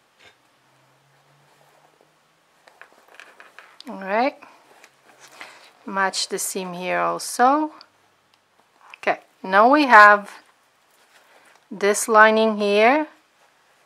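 Fabric rustles softly as it is handled and folded.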